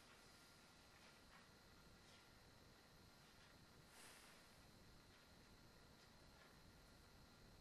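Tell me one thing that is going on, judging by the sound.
A grand piano plays softly in a large, echoing hall.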